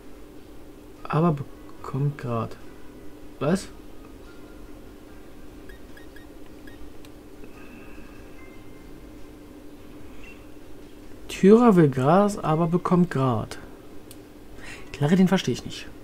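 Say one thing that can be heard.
A man talks calmly and closely into a microphone, in short bursts.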